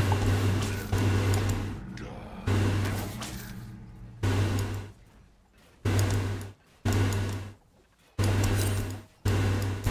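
Game weapons clash and spells burst in a fight.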